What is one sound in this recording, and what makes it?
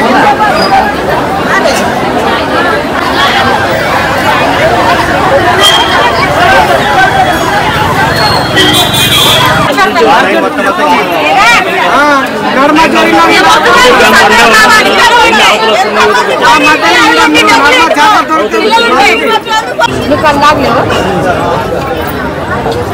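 A large crowd of men, women and children chatters loudly all around.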